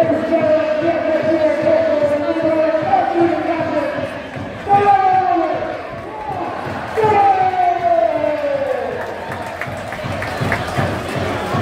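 A large stadium crowd sings loudly in unison, echoing outdoors.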